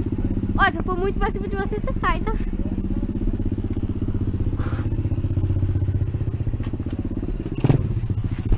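A small four-stroke mini dirt bike engine putters along at low revs.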